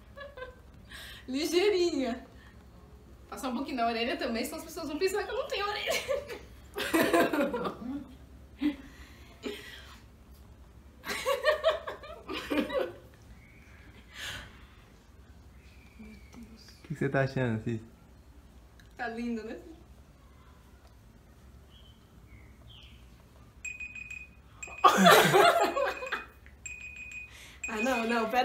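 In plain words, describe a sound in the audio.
Two young women talk and laugh close by.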